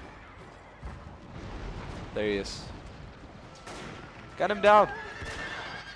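Horses gallop with drumming hooves.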